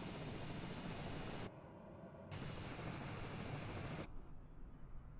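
A propeller plane's engine roars loudly.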